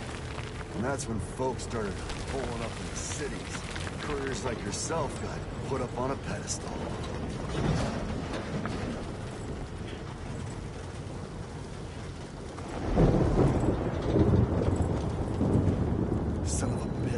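A vehicle's engine rumbles steadily as it drives.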